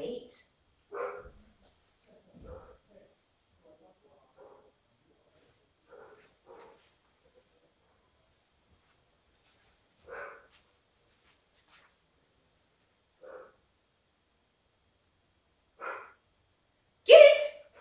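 A young woman gives short, calm commands nearby.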